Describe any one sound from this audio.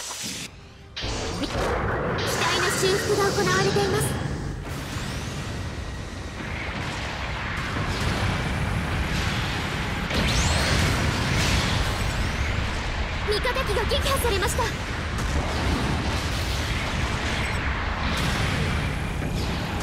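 Heavy thrusters roar steadily.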